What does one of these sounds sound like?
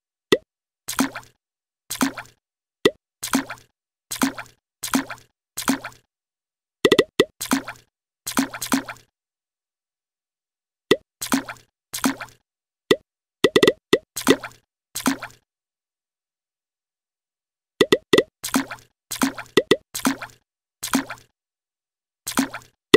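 A children's game plays short, bright sound effects, each starting with a click.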